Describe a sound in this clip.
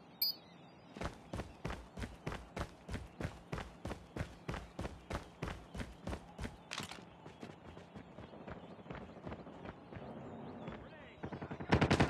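Footsteps thud quickly and evenly on hard ground.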